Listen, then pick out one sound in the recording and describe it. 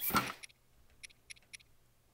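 A game menu blips softly a few times.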